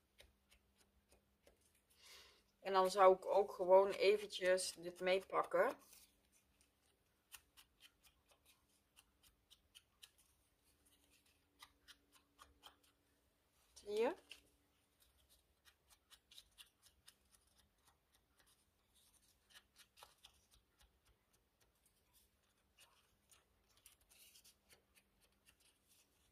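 An ink blending tool dabs and taps softly on paper.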